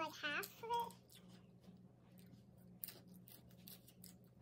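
Lettuce leaves crinkle and rustle in a young girl's hands.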